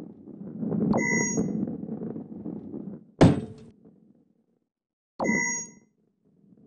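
A bright chime rings twice.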